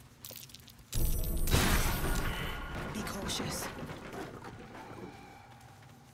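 A magic spell bursts with a loud crackling whoosh, then fades away.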